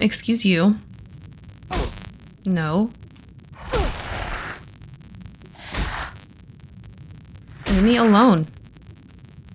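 A young woman speaks in short, animated bursts close to a microphone.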